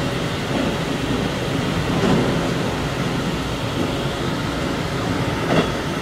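A passing train rushes by close alongside.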